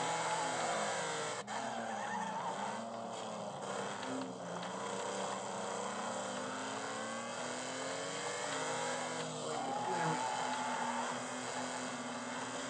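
Tyres screech as a car slides through corners.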